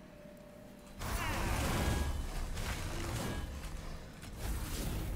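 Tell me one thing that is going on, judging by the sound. A magical whoosh sounds as a creature is summoned.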